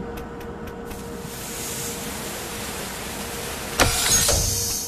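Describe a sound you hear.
Steam hisses loudly from vents.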